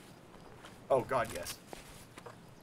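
A man speaks briefly and casually into a close microphone.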